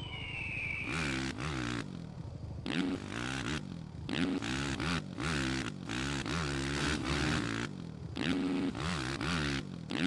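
A dirt bike engine revs up and down repeatedly, whining as it accelerates.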